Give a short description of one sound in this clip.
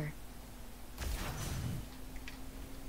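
An energy whip lashes with a whooshing crackle.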